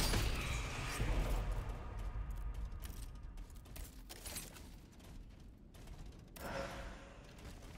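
A shimmering magical hum swells and fades.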